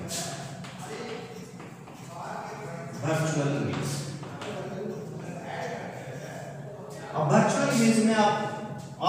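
A man explains calmly in a slightly echoing room.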